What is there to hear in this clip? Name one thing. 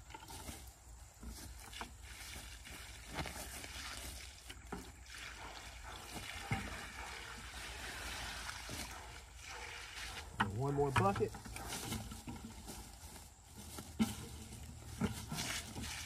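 A plastic bucket knocks and thumps.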